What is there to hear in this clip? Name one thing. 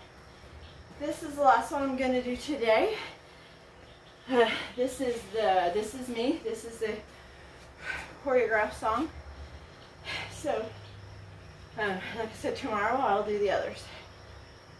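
A woman speaks with animation, facing the listener.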